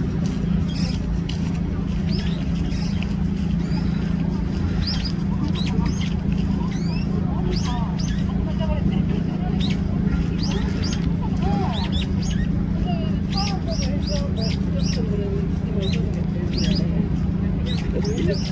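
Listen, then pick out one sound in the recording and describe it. A bird chirps with quick, high, sharp notes over and over.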